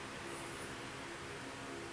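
Fingers rub softly against stiff fabric.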